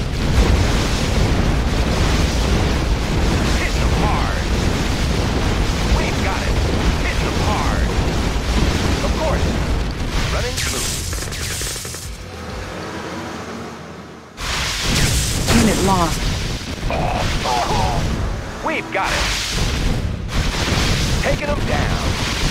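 Tank engines rumble as a column of armoured vehicles moves across the ground.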